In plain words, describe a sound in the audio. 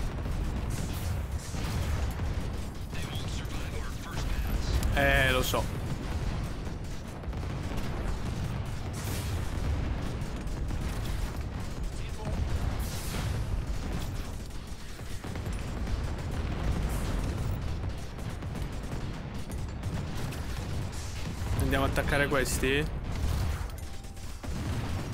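Laser blasts and explosions rumble on steadily.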